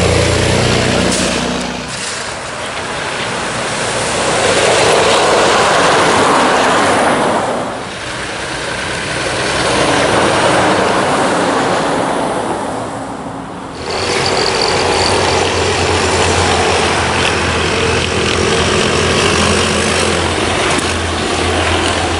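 Heavy trucks roar past close by on a snowy road.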